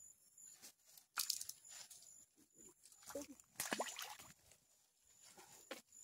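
A fish splashes and thrashes in the water close by.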